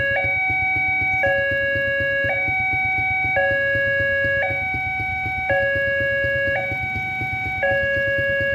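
A railway crossing alarm rings loudly and steadily, with rapid strokes switching between two tones about once a second.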